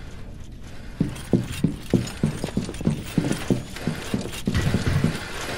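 Heavy footsteps run across a metal floor.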